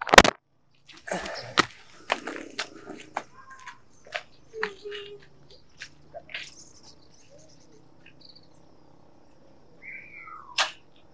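Footsteps scuff on a dirt road.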